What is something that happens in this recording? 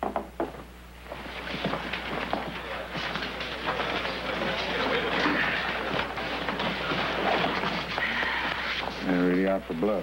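A crowd of people murmurs in a busy room.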